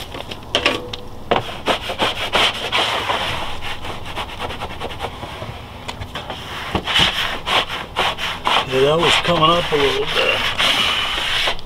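A sponge scrubs briskly against a hard surface.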